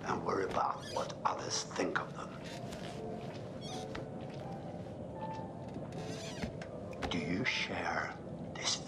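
A middle-aged man speaks calmly and closely in a low voice.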